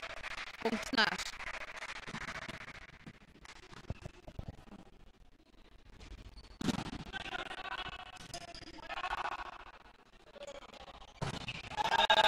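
A volleyball is struck with sharp smacks in an echoing hall.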